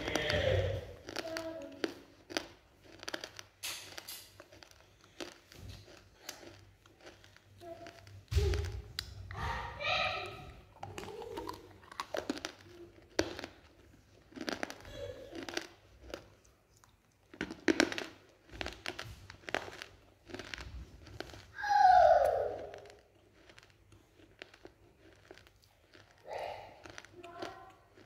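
Wet mouth clicks and smacks sound very close by.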